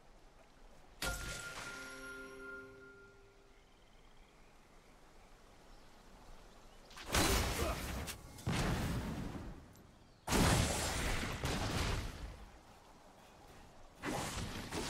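Video game sound effects chime and clash.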